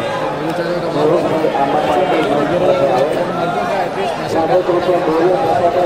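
Men on the court shout and argue.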